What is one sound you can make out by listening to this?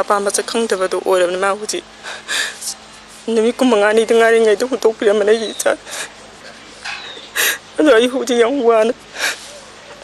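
A woman speaks softly and haltingly, close by.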